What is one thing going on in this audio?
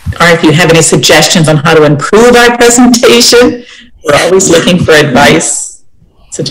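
A middle-aged woman speaks warmly over an online call.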